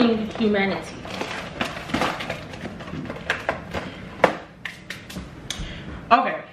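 A snack box rustles and crinkles in someone's hands.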